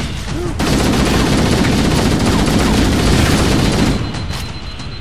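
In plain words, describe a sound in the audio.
A rifle fires in rapid, rattling bursts.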